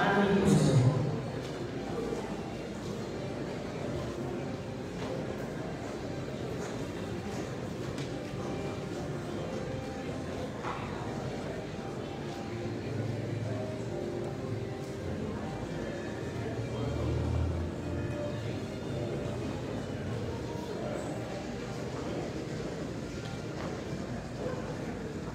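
A large crowd murmurs softly in a big echoing hall.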